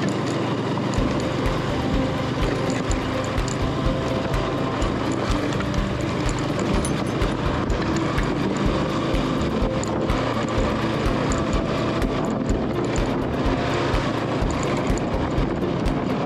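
Tyres crunch and rumble over a bumpy dirt road.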